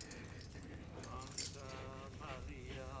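A man murmurs a prayer close by.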